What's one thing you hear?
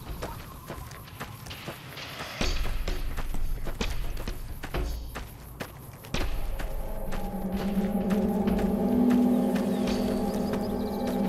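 Footsteps crunch on gravel and dry ground.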